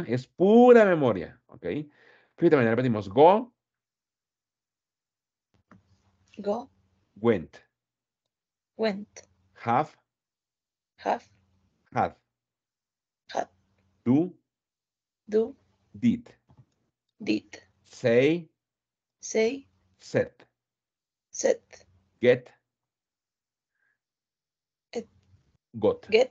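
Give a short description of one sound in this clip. A man speaks slowly and clearly through an online call, reading words out one at a time.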